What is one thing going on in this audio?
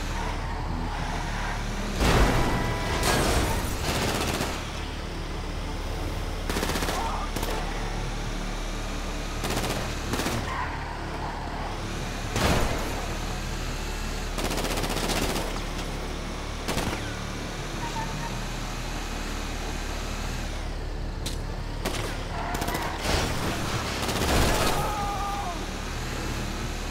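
A heavy truck engine rumbles steadily as it drives along a road.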